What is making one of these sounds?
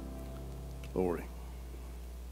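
An elderly man speaks briefly through a microphone.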